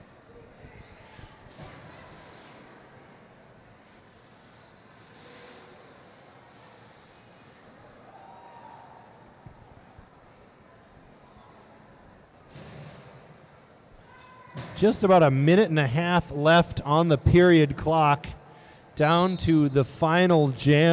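A crowd murmurs quietly in a large echoing hall.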